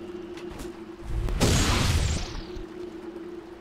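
A magic spell bursts with a loud booming whoosh.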